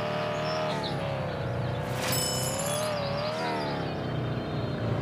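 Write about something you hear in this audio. A car engine in a driving game revs and hums with a shifting pitch.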